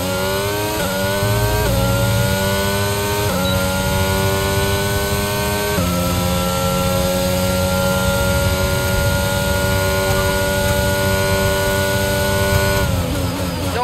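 A racing car engine screams at high revs, shifting up through the gears.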